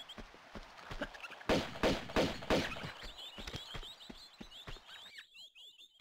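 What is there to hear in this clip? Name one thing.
Quick footsteps thud on a wooden floor.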